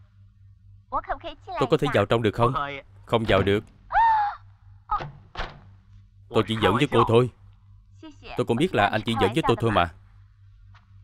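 A young woman exclaims with animation.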